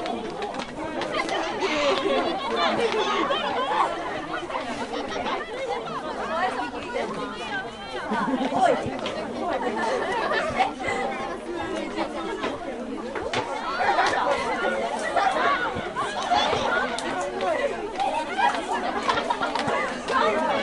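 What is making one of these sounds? Young women shout and call to each other outdoors on an open field.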